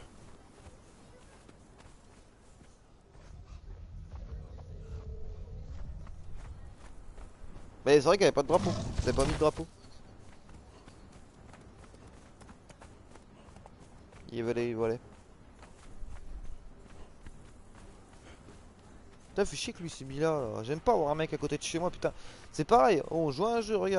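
Footsteps thud quickly on soft sand.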